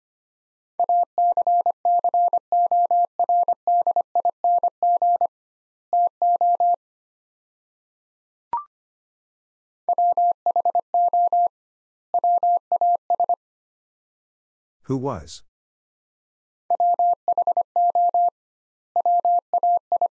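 Morse code beeps sound in quick bursts of short and long tones.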